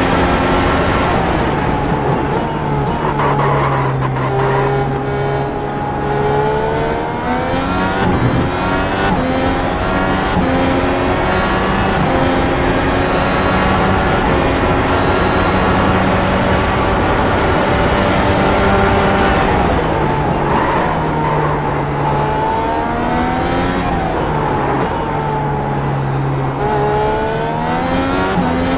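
A racing car engine roars at high revs, climbing through the gears and dropping low when slowing for corners.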